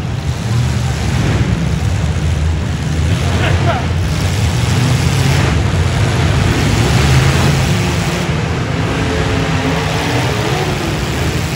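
A large crowd cheers in the stands.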